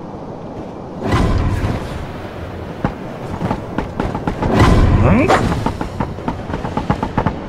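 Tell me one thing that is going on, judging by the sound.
A climber scrapes and scrambles up a rocky ledge.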